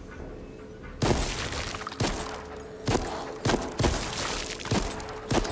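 A heavy gun fires loud single shots at intervals.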